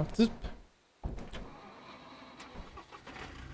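A vehicle engine starts and idles.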